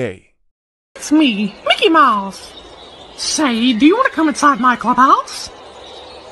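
A high-pitched cartoon male voice speaks with animation.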